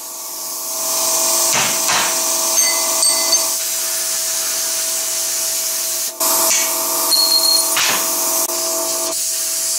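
An angle grinder whines as it grinds metal.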